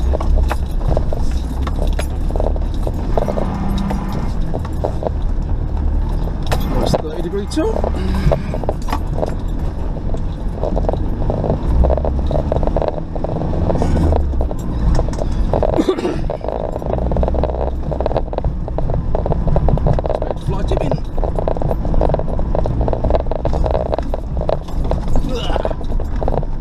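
A vehicle engine rumbles steadily while driving slowly.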